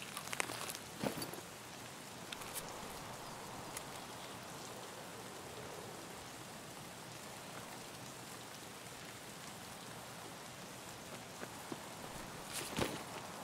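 A young man speaks quietly into a close microphone.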